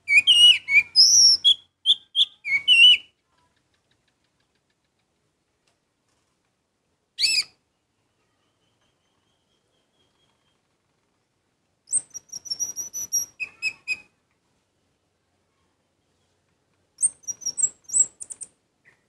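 A songbird sings loud, varied phrases in short bursts, with silent pauses between them.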